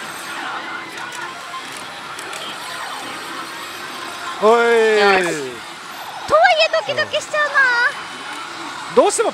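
A slot machine plays electronic jingles.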